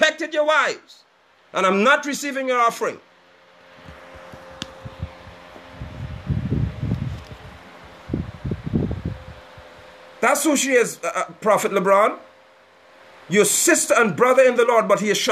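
A man speaks calmly and close to a phone microphone.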